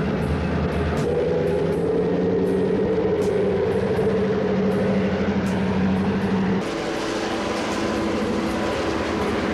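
Diesel locomotive engines drone loudly.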